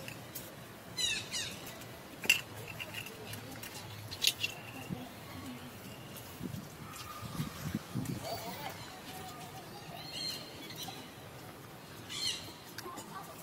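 A baby monkey squeaks in short, high chirps.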